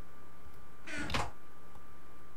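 A wooden chest thuds shut.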